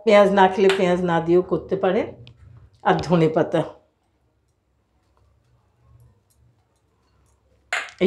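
Hands stir and mix soft food in a bowl.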